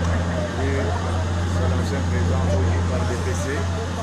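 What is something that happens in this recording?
A man speaks out loudly to a group outdoors.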